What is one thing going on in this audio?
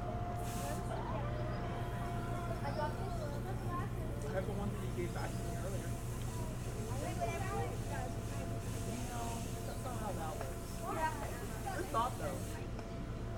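An eagle gives soft, high chirping calls nearby.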